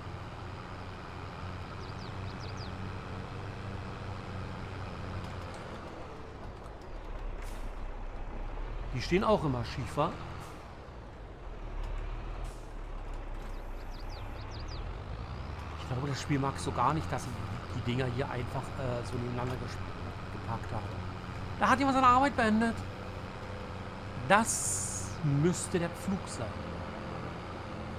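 A tractor engine hums steadily as it drives.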